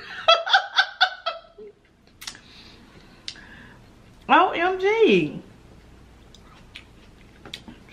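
A woman chews and munches food close to a microphone.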